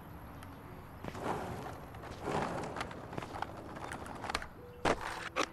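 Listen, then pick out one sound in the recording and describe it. Skateboard wheels roll over paving stones.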